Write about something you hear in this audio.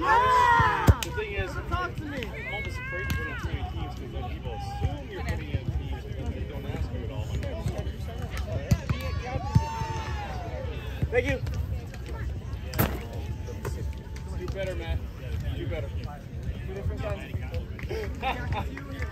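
Young men and women talk and call out with animation outdoors.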